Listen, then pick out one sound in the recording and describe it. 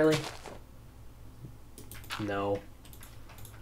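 Short electronic game chimes ring out now and then.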